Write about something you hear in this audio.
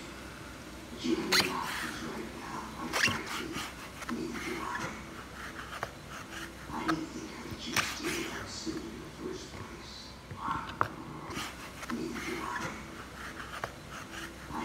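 A knife taps against a plastic cutting board as it slices soft food.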